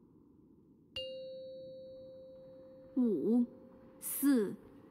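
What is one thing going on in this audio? A game alert chime rings out once and slowly fades.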